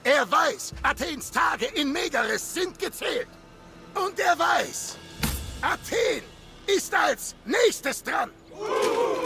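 A man speaks forcefully and angrily, close by.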